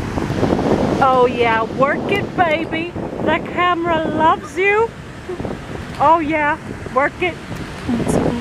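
A young girl speaks cheerfully close by.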